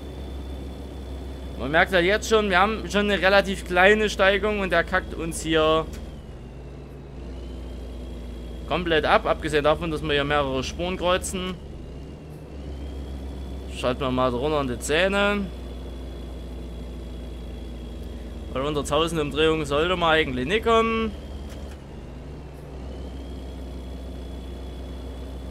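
A truck engine drones steadily at a low pitch.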